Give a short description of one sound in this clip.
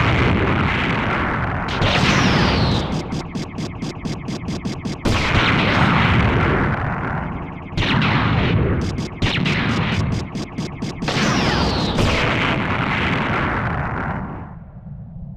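Rapid gunfire rattles steadily.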